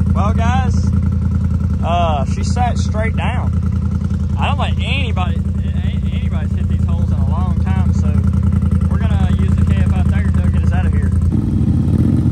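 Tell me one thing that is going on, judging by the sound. An engine idles steadily close by.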